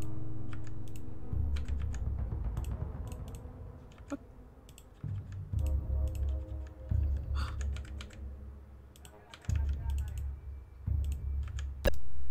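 A computer mouse clicks sharply, again and again.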